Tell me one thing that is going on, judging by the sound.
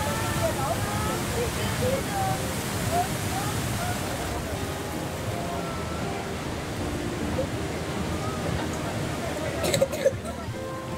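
A waterfall roars steadily, close by.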